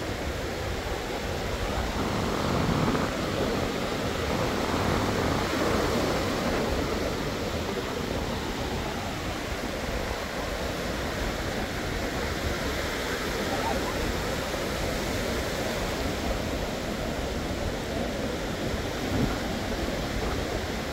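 Small waves wash steadily onto the shore.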